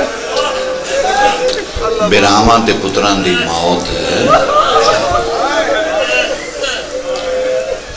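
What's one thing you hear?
A man speaks passionately into a microphone, heard through a loudspeaker.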